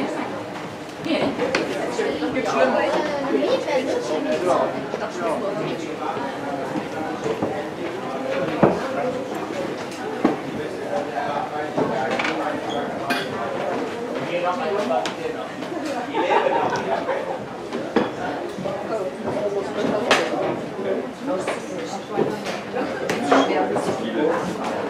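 Several adult men and women chatter nearby in a busy indoor space.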